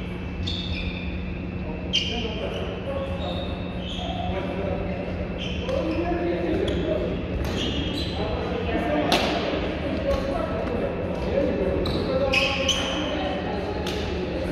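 Shoes squeak sharply on a sports floor.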